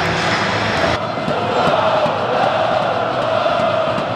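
A large crowd chants and cheers in a stadium.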